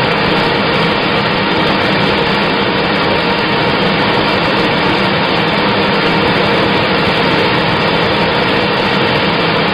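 A paper slitting machine hums and whirs steadily as a roll of paper turns.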